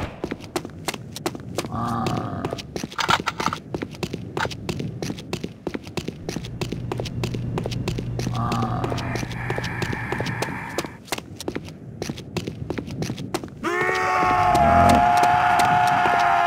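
Footsteps thud quickly and steadily on a hard floor.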